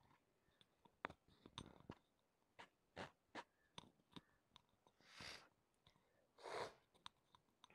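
A knife slices softly through a cake.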